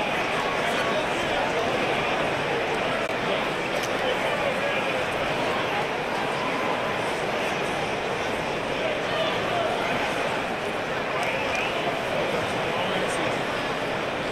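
A large arena crowd murmurs and cheers steadily.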